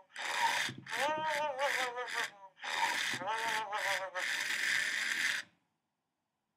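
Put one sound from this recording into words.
A furry electronic toy chatters and sings in a squeaky, high-pitched voice.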